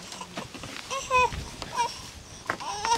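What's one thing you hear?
A baby babbles and squeals.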